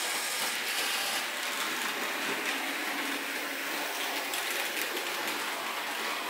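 A small model train rolls along its track with a soft whir.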